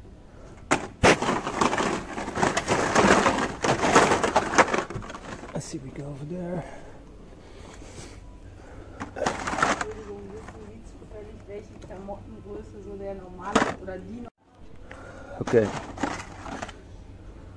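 Plastic toy packages rustle and clatter as a hand rummages through them.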